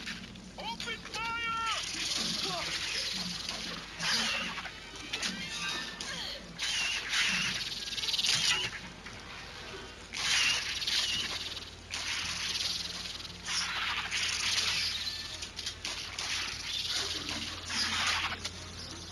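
Creatures shriek and snarl in harsh bursts.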